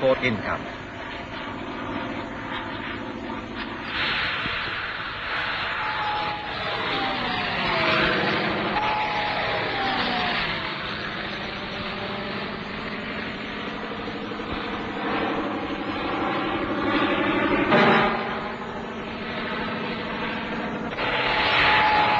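A small propeller plane's engine roars overhead and its pitch drops as it passes.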